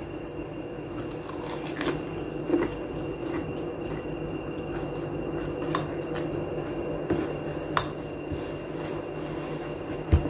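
A young woman chews and slurps food close by.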